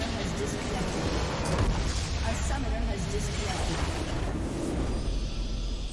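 A game's structure explodes with a deep rumble.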